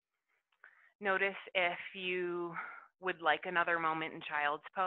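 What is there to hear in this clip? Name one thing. A young woman speaks calmly and slowly close to a microphone.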